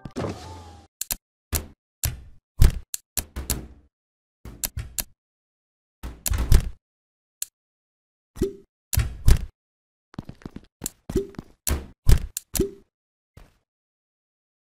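Light electronic blocks knock and clack as they shift and snap into place.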